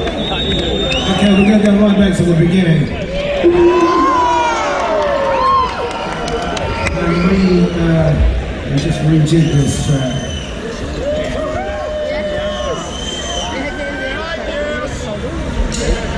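Shrill whistles rise and fall from a crowd.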